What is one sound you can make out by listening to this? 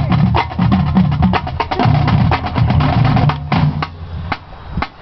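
A marching band plays loudly outdoors.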